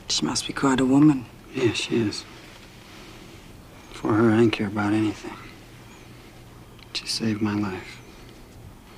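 A woman speaks softly and close by.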